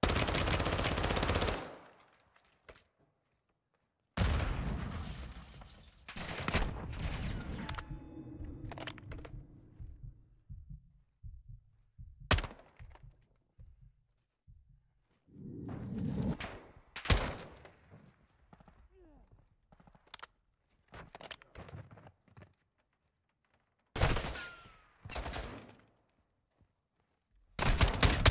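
A rifle fires loud single shots that echo around a large hall.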